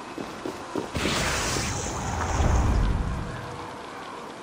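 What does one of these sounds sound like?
A deep magical whoosh roars up and fades away.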